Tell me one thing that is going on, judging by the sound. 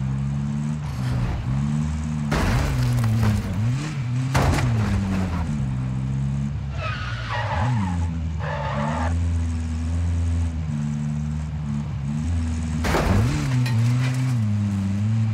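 A car engine revs and hums steadily, rising and falling in pitch.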